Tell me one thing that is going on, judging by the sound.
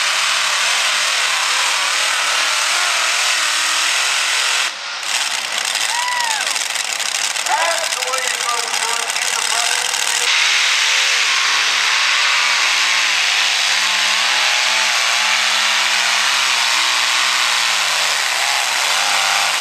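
A tractor's big engine roars loudly and unevenly close by.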